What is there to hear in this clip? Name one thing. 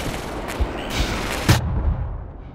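A crowbar swings through the air with a whoosh.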